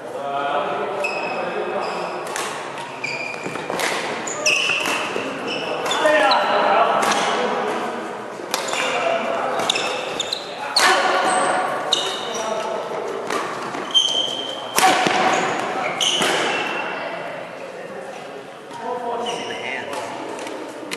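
Shoes squeak sharply on the court floor.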